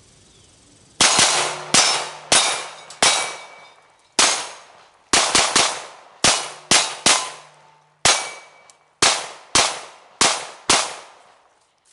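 Bullets clang against steel targets.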